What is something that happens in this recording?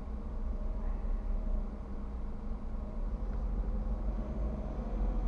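A car engine idles with a low steady rumble.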